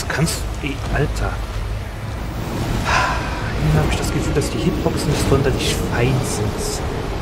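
Heavy blows and crashes of a fierce fight land with deep booms.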